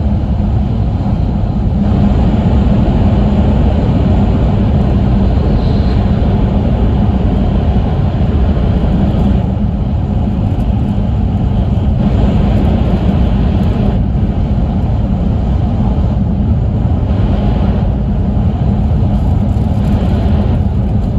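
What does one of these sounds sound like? A train rumbles steadily along the tracks at speed.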